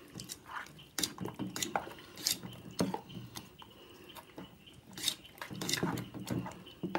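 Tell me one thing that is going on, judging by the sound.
Fingers scrape against the side of a metal bowl.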